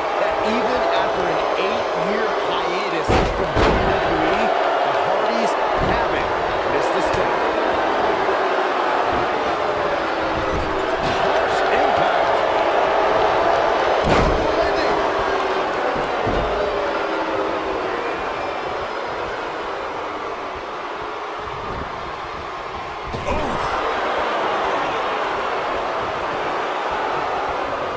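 A large crowd cheers and roars throughout, echoing in a big arena.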